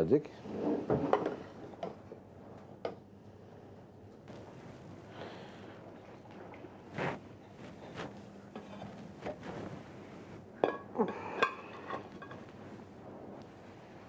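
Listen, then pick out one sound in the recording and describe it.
Water bubbles and splashes in a boiling pot.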